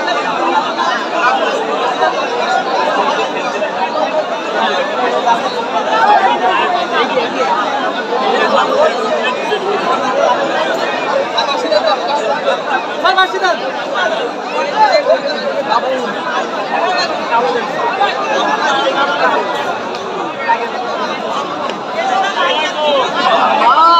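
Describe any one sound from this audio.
A large crowd outdoors chatters and cheers loudly.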